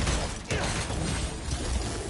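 An explosion bursts with a loud crack.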